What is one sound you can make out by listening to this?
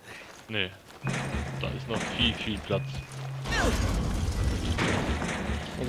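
A metal gate rattles and clanks as someone climbs over it.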